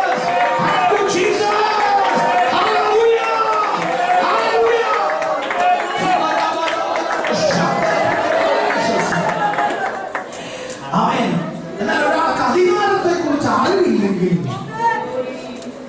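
A man preaches passionately into a microphone, heard through loudspeakers in a reverberant hall.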